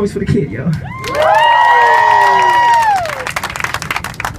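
A crowd cheers and whoops together.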